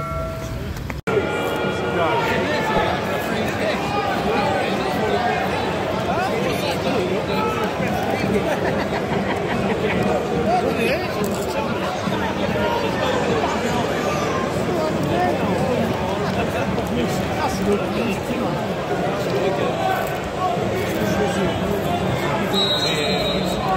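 A large crowd murmurs and chatters in an open stadium.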